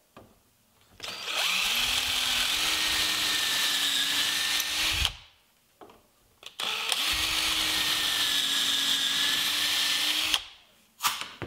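An electric drill whirs as it bores into wood.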